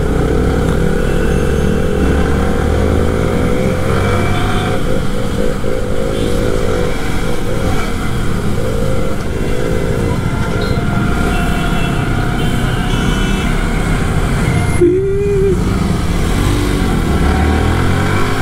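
Other motorbikes and vehicles drone by in traffic.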